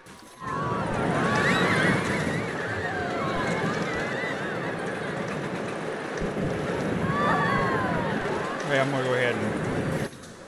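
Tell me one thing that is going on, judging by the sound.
Roller coaster wheels screech on the rails.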